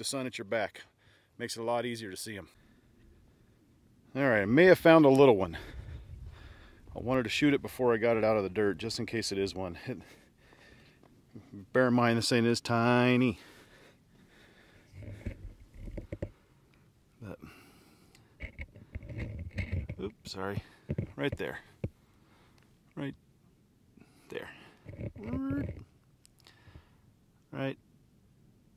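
A man talks close by, calmly explaining, in short bursts.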